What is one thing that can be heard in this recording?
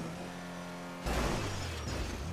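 A car crashes and tumbles with a loud thud.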